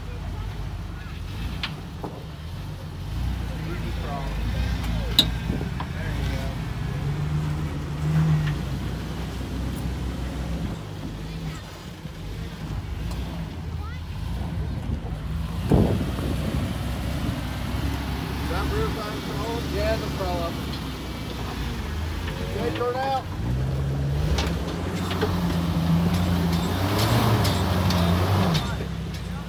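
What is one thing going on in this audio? An off-road vehicle's engine rumbles low and revs as it crawls over rock.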